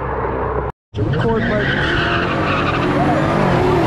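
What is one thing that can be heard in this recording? A car roars along the road toward the listener.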